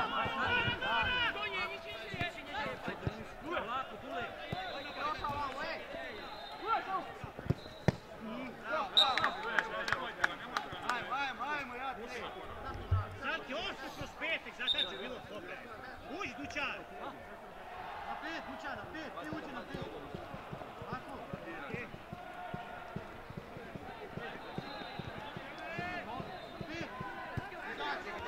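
Men shout and call to each other outdoors.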